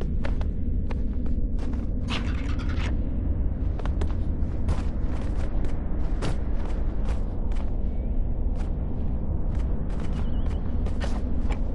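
Light footsteps tap steadily on stone.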